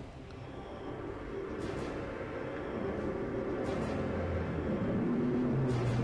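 A magic blast crackles and whooshes.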